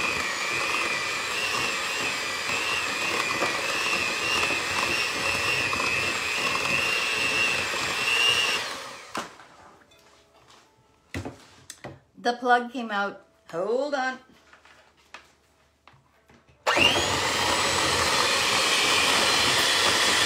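An electric hand mixer whirs loudly, beating a mixture in a bowl.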